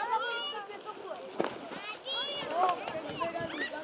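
Water splashes as a man wades through shallow water.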